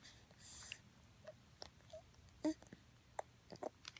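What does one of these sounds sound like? A baby makes soft cooing sounds close by.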